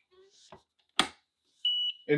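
A press handle clunks down with a sharp knock.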